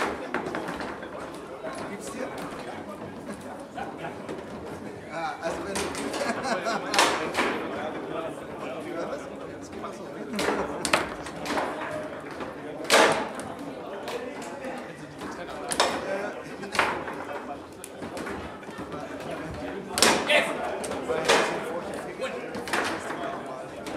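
A foosball ball clacks sharply against rods and walls of a table.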